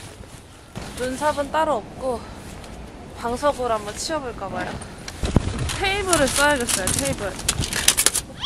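A young woman talks brightly and cheerfully close by.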